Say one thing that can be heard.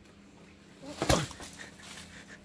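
A heavy fruit thuds onto the ground.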